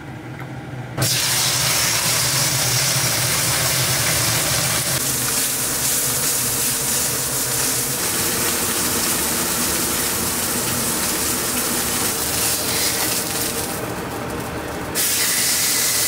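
Beef sizzles loudly in a hot pan.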